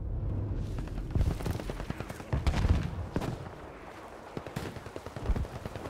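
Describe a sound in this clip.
Gunshots crack rapidly close by.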